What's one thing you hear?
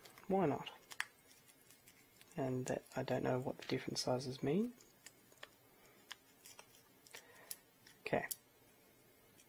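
Small plastic parts click and tick as hands handle them.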